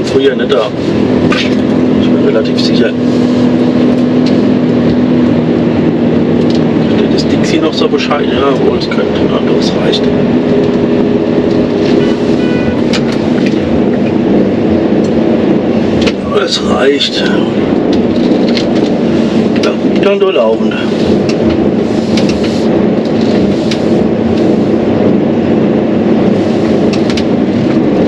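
A heavy diesel truck engine hums from inside the cab as the truck rolls slowly.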